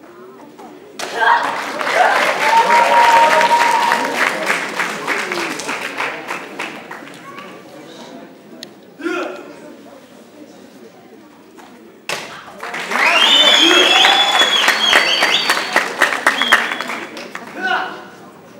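An audience claps and cheers in a large echoing hall.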